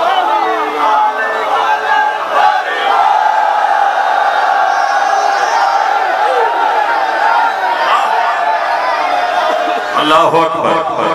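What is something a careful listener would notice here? A large crowd of men chants loudly together.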